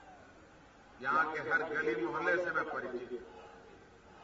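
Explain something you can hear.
A man speaks forcefully into a microphone over loudspeakers outdoors.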